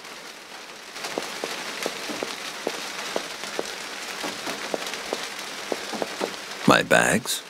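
Footsteps tap on a hard floor.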